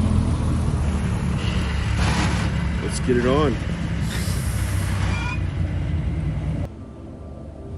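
A dump truck's diesel engine rumbles as it drives past close by.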